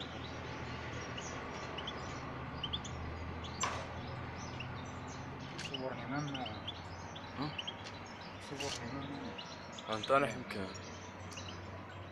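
Small caged birds chirp and twitter.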